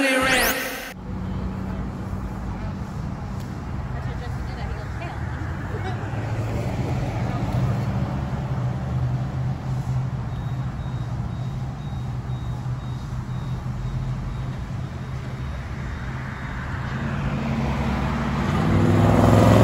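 A car engine hums low and steady nearby.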